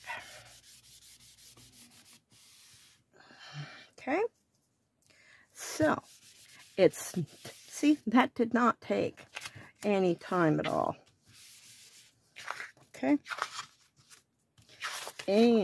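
A cloth rubs and scrubs across a sheet of paper.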